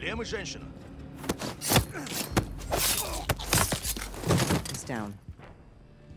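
Two men scuffle with heavy thuds.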